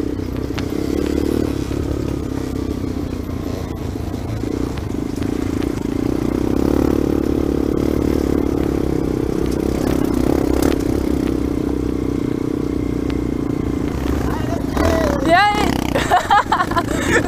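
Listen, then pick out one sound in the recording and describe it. A dirt bike engine drones close up while riding along a dirt trail.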